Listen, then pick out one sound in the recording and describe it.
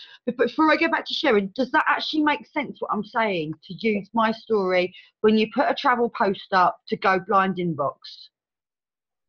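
An older woman talks calmly over an online call.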